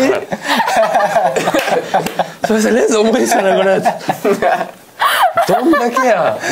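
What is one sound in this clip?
Several young men and a young woman laugh.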